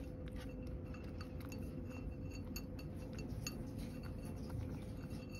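A cat laps and chews food noisily from a bowl, close up.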